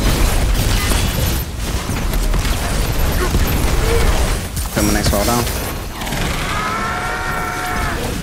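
Energy blasts crackle and whoosh.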